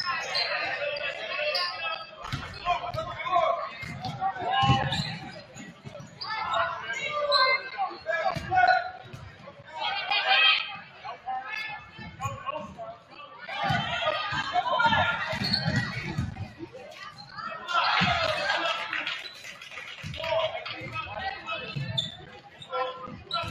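A crowd of spectators chatters and cheers in an echoing gym.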